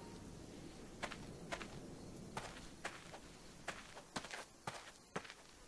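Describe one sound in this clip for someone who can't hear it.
Footsteps crunch on dirt at a steady walking pace.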